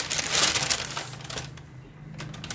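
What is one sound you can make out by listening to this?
A paper bag crinkles and rustles close by.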